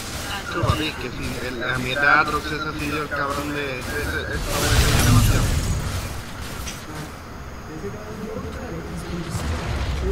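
Magic spell effects burst with a loud whoosh.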